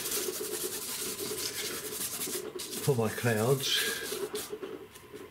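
A brush scrubs and swishes over paper.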